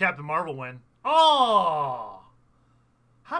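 A man exclaims loudly in surprise.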